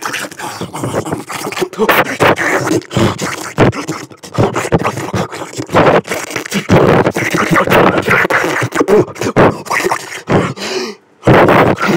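A man talks loudly and with animation, close by.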